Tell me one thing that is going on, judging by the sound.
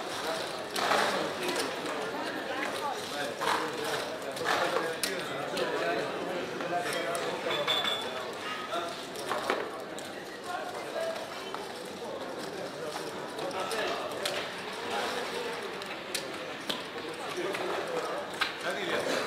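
Gaming chips clatter and click as they are stacked and slid across a table.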